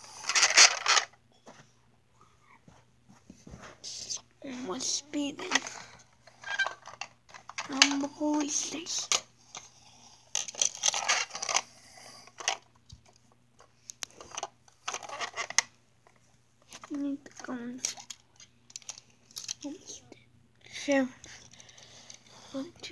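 Small toy vehicles bump and scrape softly on a carpet.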